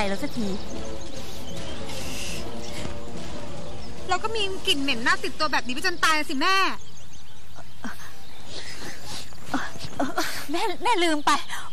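A young woman sobs.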